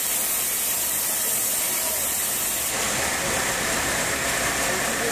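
A band saw whines loudly as it cuts through a log.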